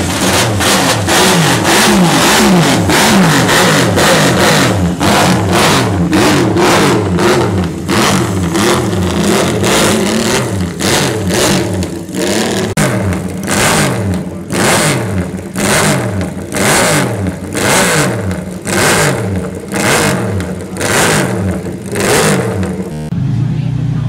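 A racing motorcycle engine revs loudly and repeatedly close by.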